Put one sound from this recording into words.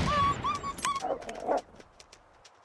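A rifle fires with a loud crack.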